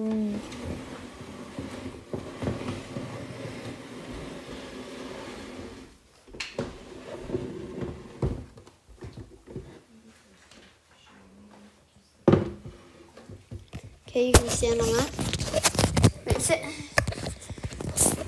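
A young boy talks close to the microphone.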